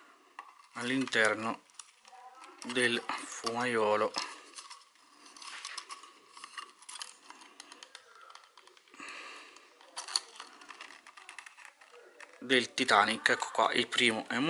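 Plastic tubes scrape and knock together as one is fitted into another.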